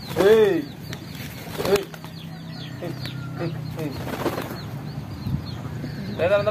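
A pigeon coos close by.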